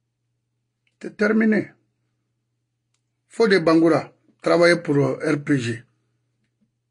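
A middle-aged man speaks calmly and close to the microphone, in short bursts.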